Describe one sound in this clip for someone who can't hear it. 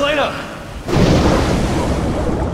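A body plunges into water with a heavy splash.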